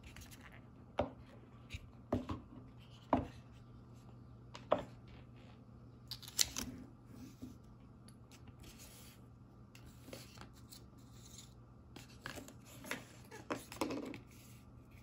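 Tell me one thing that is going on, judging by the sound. A plastic case knocks and clicks against a wooden table.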